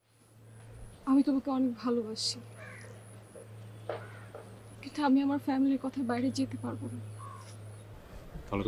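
A young woman speaks close by, tense and questioning.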